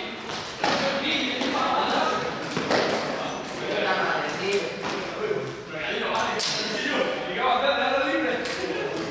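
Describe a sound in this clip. Young people talk and call out together in a large echoing hall.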